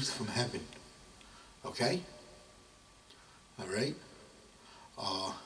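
A middle-aged man speaks in short phrases into a close microphone.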